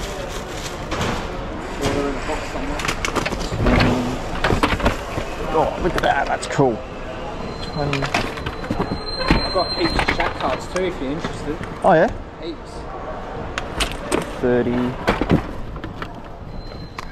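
Plastic game cases clack as a hand handles them.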